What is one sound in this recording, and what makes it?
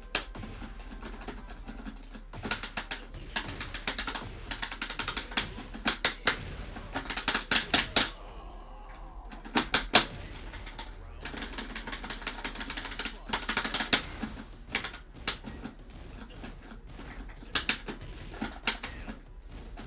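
Punches and kicks land with sharp thuds in a video game fight.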